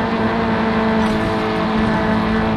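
Metal scrapes against a wall.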